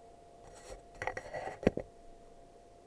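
Thumps and rustling come from something brushing against the microphone.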